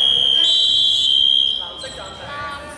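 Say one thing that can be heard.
A referee's whistle blows a long, shrill blast.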